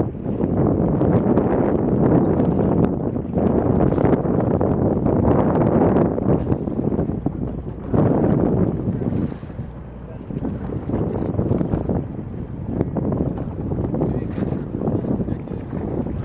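Water laps against the hull of an inflatable boat.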